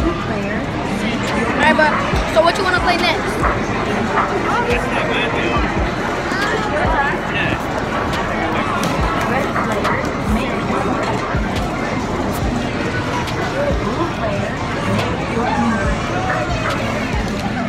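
A boy talks close by with animation.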